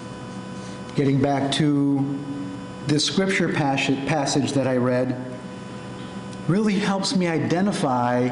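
A middle-aged man speaks with animation into a microphone, heard through a loudspeaker in an echoing room.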